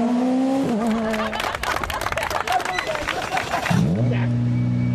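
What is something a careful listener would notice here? A crowd claps and cheers outdoors.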